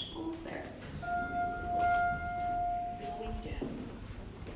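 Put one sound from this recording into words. An elevator chimes with a steady tone.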